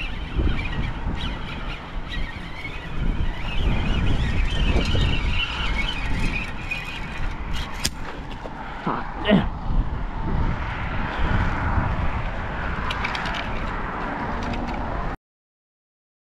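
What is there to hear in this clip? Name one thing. Wind blows across an open space, rumbling loudly.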